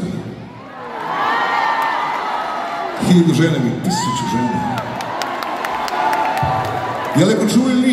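A large crowd cheers and screams in a big echoing arena.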